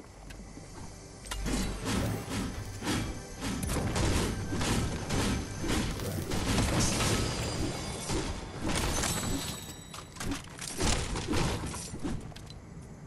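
A pickaxe strikes hard surfaces again and again with sharp knocks.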